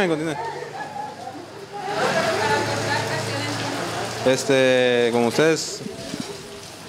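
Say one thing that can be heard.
Several women talk and call out with animation close by.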